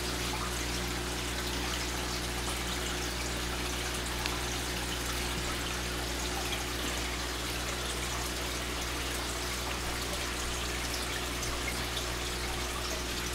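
Air bubbles fizz and trickle steadily through water.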